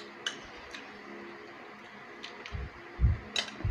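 Liquid pours from a bowl onto food.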